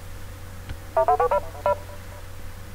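A short electronic chime plays.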